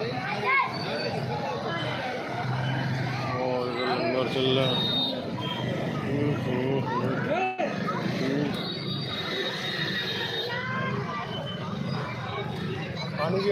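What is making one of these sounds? A crowd of men, women and children chatters loudly all around, close by.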